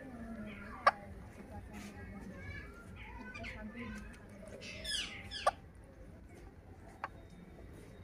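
Parrots chatter and squawk up close.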